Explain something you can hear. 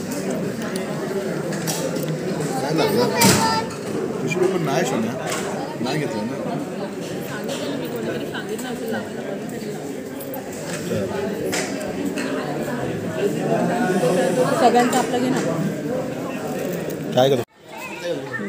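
A crowd of women chatter and talk over each other nearby.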